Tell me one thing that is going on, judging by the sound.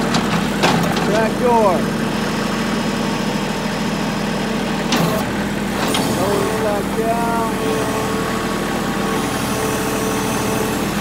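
Hydraulics whine in short rising bursts.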